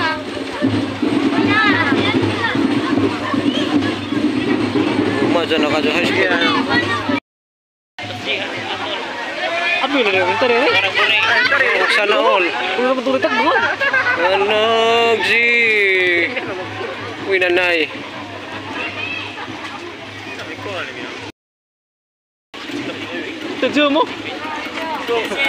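A crowd of young people chatter and call out outdoors.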